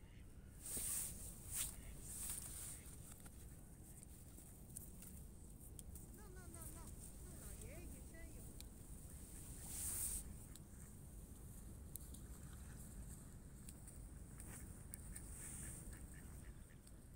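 Wind rumbles steadily outdoors.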